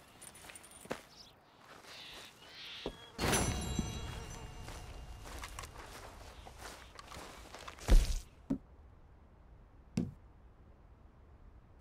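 Footsteps crunch slowly on stony ground.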